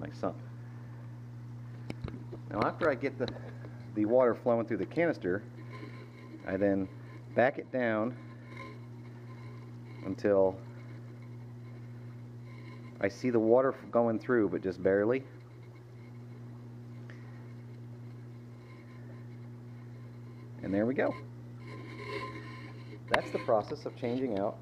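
Water trickles and bubbles.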